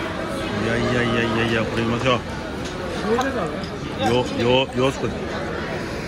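A man talks close by in short bursts.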